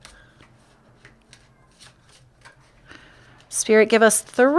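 Playing cards riffle and slap softly as they are shuffled by hand.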